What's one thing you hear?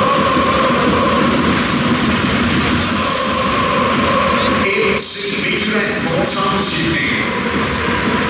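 A large crowd of fans sings and chants loudly in an echoing stadium.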